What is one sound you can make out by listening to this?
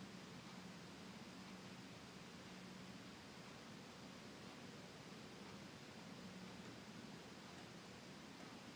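A middle-aged man speaks calmly and steadily, heard through a microphone in a small room.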